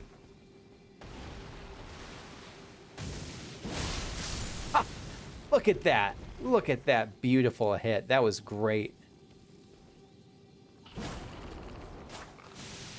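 Lightning crackles from a sword.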